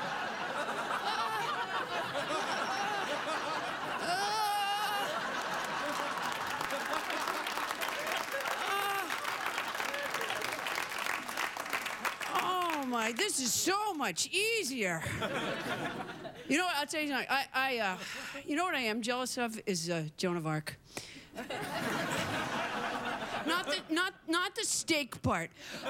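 A woman speaks animatedly into a microphone.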